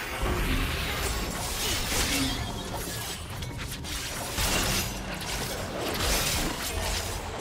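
Fantasy battle effects whoosh and crackle as magic spells hit.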